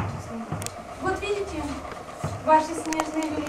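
A child speaks in a high voice.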